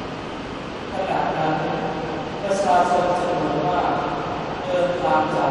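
A man chants in a large echoing hall, heard through loudspeakers.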